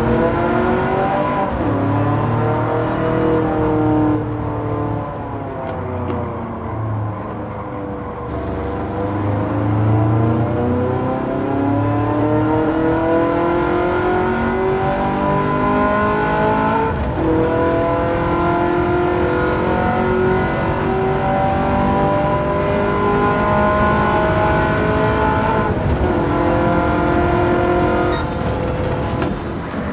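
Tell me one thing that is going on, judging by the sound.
A racing car engine roars steadily, its pitch rising and falling with gear changes.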